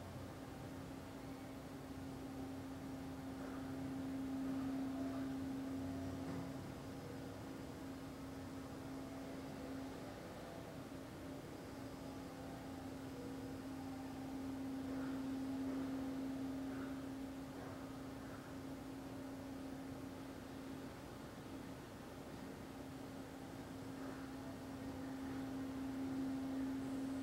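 A man hums a low, steady note close by, swelling and fading with each long breath.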